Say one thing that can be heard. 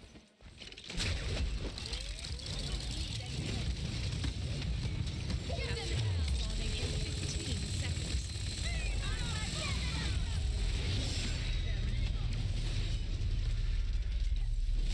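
Weapons fire and blasts crackle rapidly in a fierce battle.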